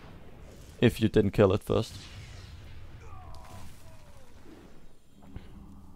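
A magic spell crackles and bursts with a whoosh.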